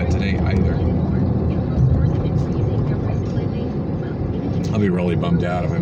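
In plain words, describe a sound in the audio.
A car rumbles steadily along a road, heard from inside.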